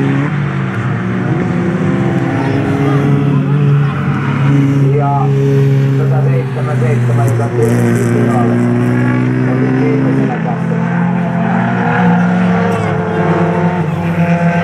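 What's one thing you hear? Racing car engines roar and rev loudly as the cars speed around a track.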